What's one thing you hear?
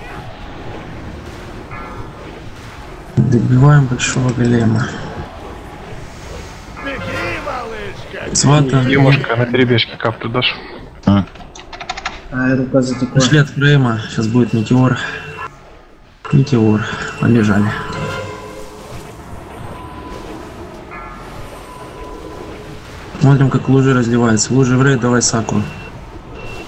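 Magic spells whoosh and crackle in a battle.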